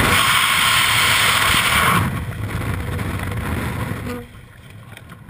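A parachute flaps open in the wind.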